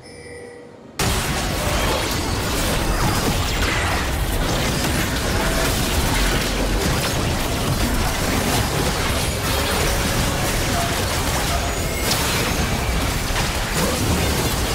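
Spell and weapon effects clash in a computer game battle.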